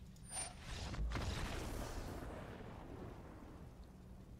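A game's magical whoosh sounds sweep by.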